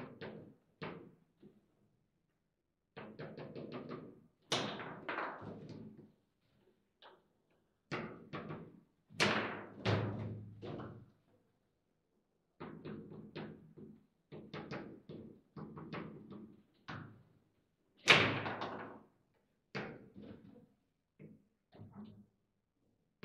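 Foosball rods rattle and clack as they are spun and slid.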